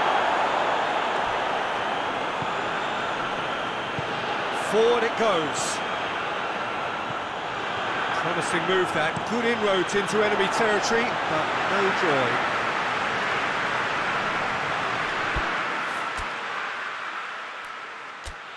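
A stadium crowd roars steadily, then fades.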